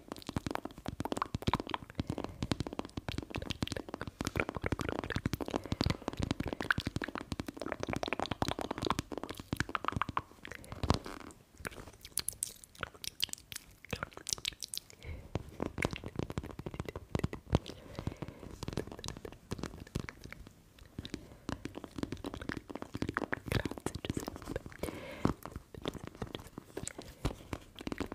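Fingernails tap and scratch on a hard plastic toy burger close to a microphone.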